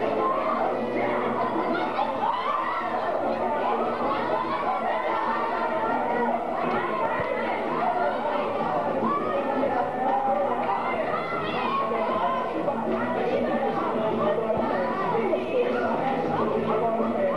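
A large crowd of men and women chatters loudly in an echoing hall.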